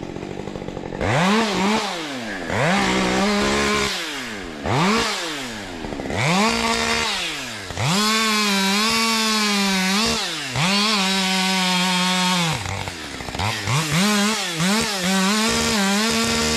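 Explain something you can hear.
A chainsaw revs and cuts through wood nearby, outdoors.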